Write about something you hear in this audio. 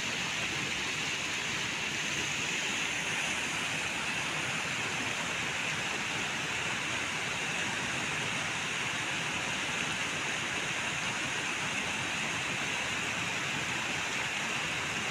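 Water pours over a small weir and rushes steadily close by.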